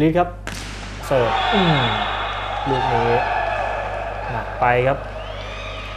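Spectators cheer in an echoing indoor hall.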